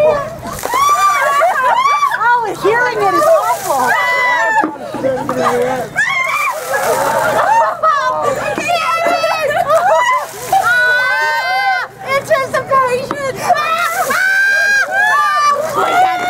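Women shriek and laugh loudly outdoors.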